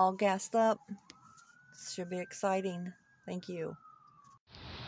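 A woman speaks close by, with animation.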